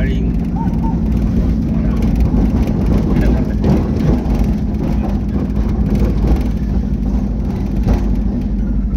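A vehicle's engine drones, heard from inside the vehicle.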